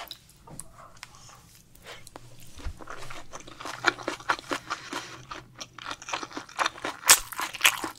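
A woman chews wet, crunchy food loudly and close up.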